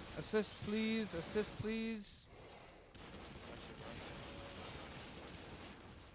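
A laser gun fires rapid bursts of zapping shots.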